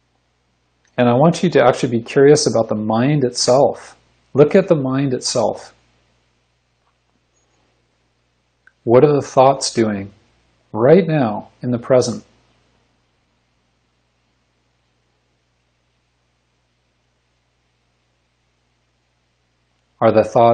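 A man speaks calmly in short phrases through a microphone on an online call.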